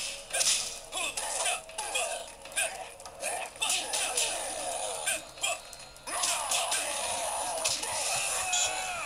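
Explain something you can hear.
Video game music plays through a small speaker.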